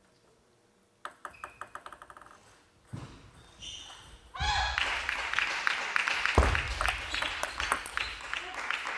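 A table tennis ball bounces and clicks off paddles and the table.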